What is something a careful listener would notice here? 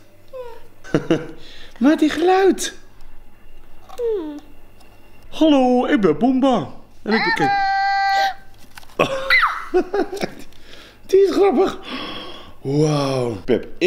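A man laughs and talks softly close by.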